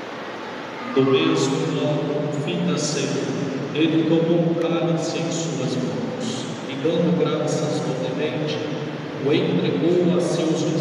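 A man sings loudly through a loudspeaker in a large echoing hall.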